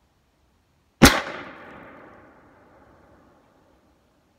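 A single gunshot cracks loudly and echoes away outdoors.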